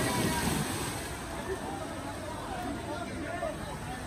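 Water splashes in a pool as children swim.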